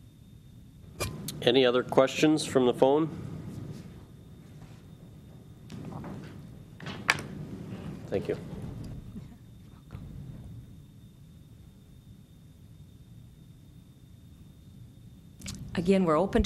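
A woman speaks into a microphone in short bursts.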